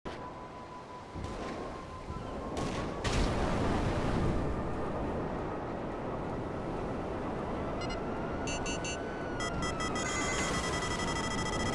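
A hover bike's jet engine roars steadily.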